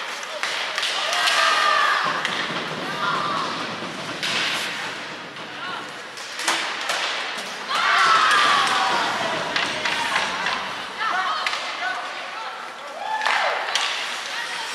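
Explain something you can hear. Young men shout to each other across the rink.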